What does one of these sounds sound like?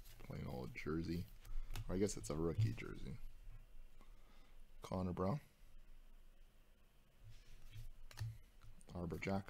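Cards slide and flick against each other in a hand.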